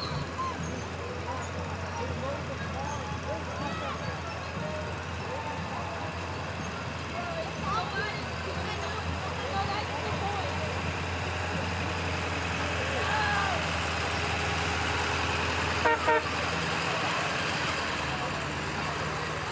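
A truck engine rumbles as it rolls slowly past close by.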